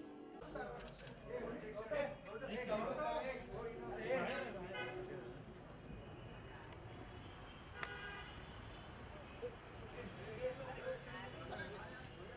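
Several men and women talk and call out nearby outdoors.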